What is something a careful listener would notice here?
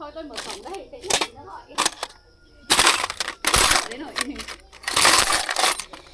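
Metal tools clatter in a box.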